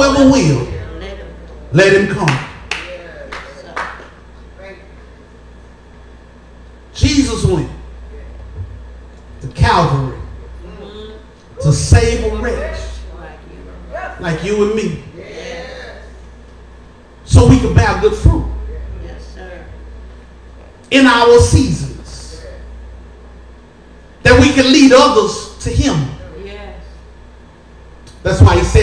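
A man preaches forcefully in loud bursts through a microphone and loudspeakers, with pauses between phrases.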